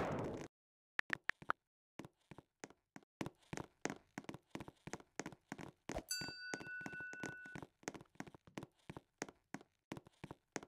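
Soft game music plays with a light beat.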